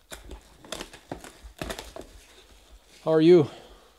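Plastic wrapping crinkles and rustles as hands tear it open.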